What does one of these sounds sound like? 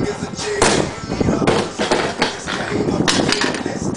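A scooter clatters as it lands on the ground.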